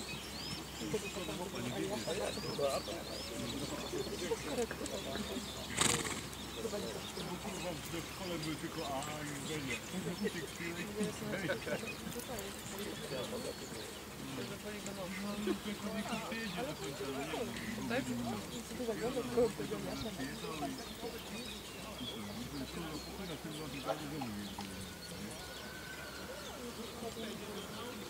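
A horse's hooves thud steadily on grass.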